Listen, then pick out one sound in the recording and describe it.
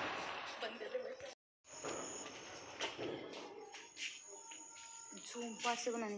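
Firecrackers crackle and pop nearby.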